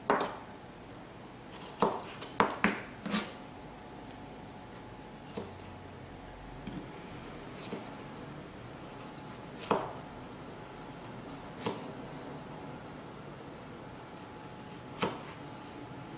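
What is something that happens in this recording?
A knife chops through small onions on a plastic board with sharp taps.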